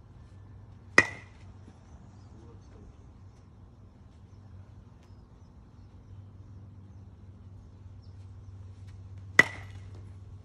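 A metal bat strikes a ball with a sharp ringing ping.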